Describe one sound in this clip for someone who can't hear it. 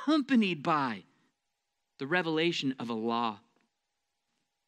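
A man speaks with emphasis through a microphone.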